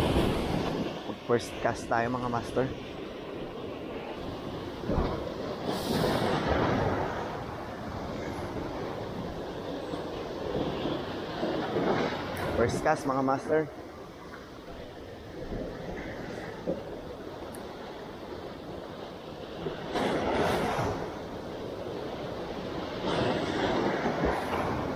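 Waves wash and break against rocks close by.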